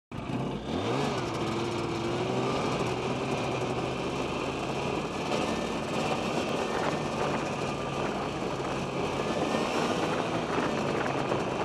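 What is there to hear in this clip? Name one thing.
A snowmobile engine revs up and drones steadily close by.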